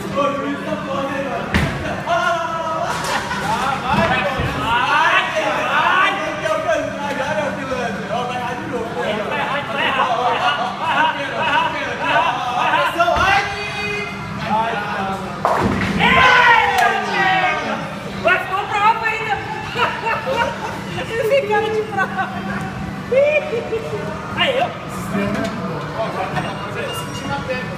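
Young men talk and laugh with animation close by.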